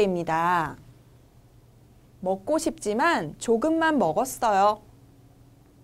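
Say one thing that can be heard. A woman speaks clearly and calmly into a microphone, pausing between phrases.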